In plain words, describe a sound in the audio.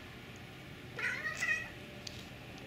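A cat chirps briefly.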